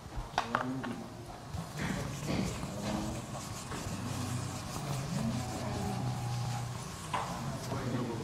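An eraser rubs across a whiteboard.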